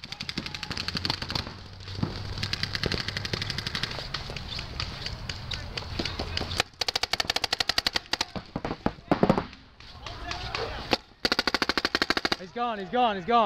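Paintball guns fire in rapid bursts of sharp pops nearby.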